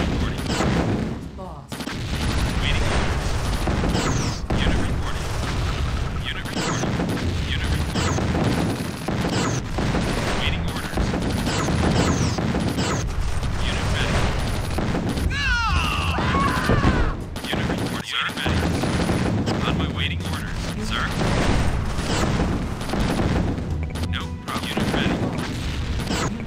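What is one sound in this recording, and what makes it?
Rapid gunfire crackles in a battle.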